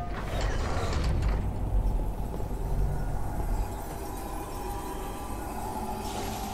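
An energy blade hums with a low, steady electric buzz.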